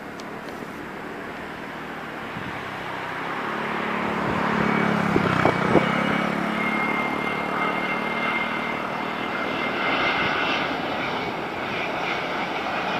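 A jet airliner roars as it approaches low overhead, growing louder.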